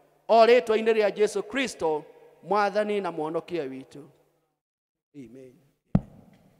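A middle-aged man speaks solemnly into a microphone, amplified through loudspeakers.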